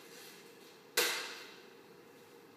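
A bowl is set down on a hard floor with a clatter.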